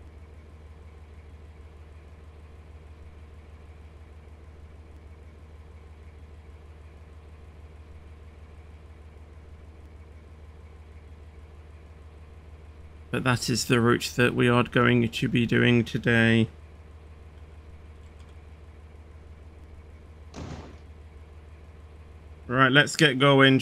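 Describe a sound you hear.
A train's motor hums low and steadily.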